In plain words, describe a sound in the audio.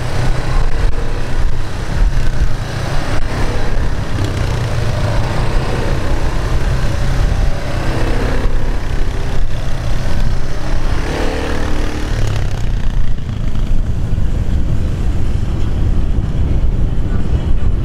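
A propeller plane's engine roars loudly and fades as the plane speeds away.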